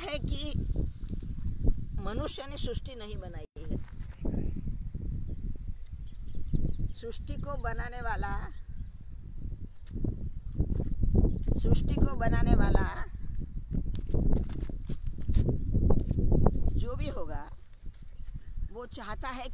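An elderly woman talks with animation close to the microphone.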